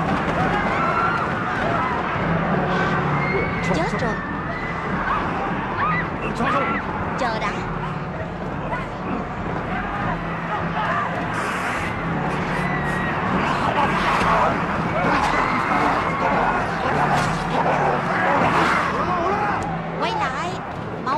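A dense crowd shouts and screams in panic.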